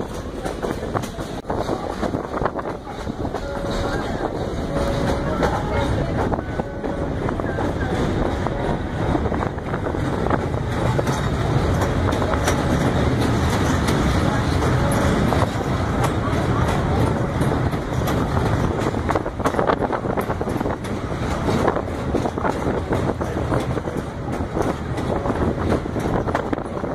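Train wheels rumble and clack steadily on the rails.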